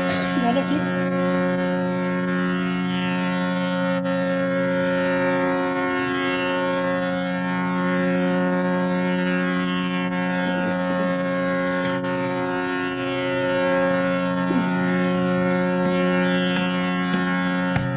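A tanpura drones steadily, its open strings plucked in a slow repeating cycle.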